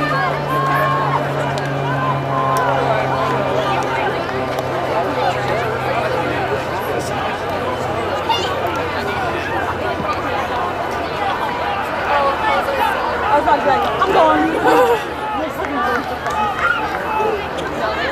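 A crowd of young people talks and cheers outdoors.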